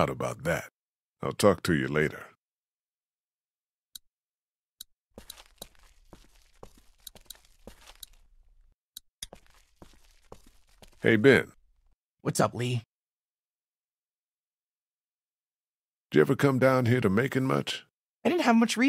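A man speaks calmly and close.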